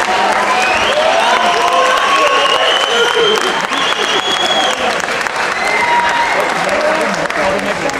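A large crowd cheers and chatters in a big echoing hall.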